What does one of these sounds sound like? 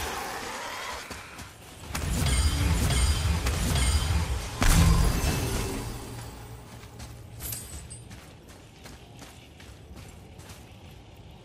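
Heavy footsteps crunch through snow.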